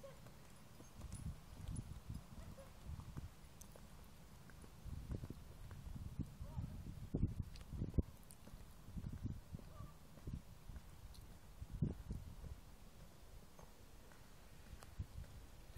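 Horse hooves thud softly on grass.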